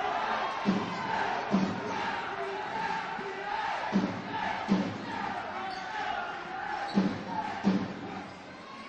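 A basketball bounces on a wooden floor in an echoing hall.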